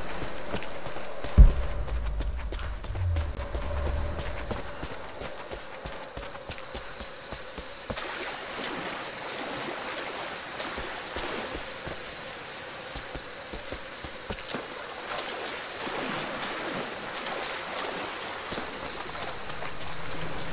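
Footsteps scuff over stone.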